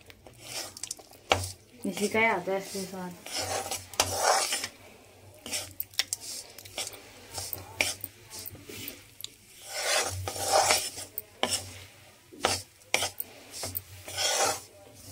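A metal spoon scrapes and stirs dry crumbly mixture in a pan.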